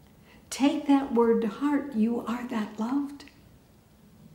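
An elderly woman speaks calmly and clearly into a microphone.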